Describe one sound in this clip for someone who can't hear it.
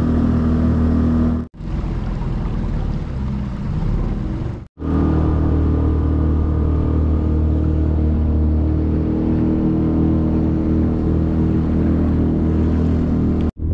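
A small boat motor chugs steadily.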